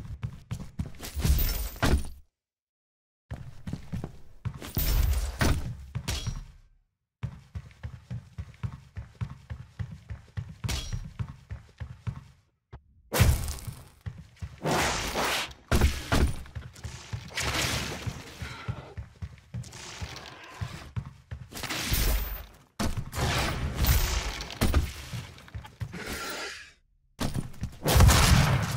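Game footsteps thud rapidly on metal floors.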